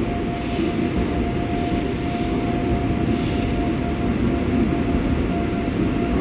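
A train's motor hums with a steady high whine.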